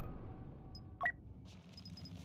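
A menu gives a short soft click.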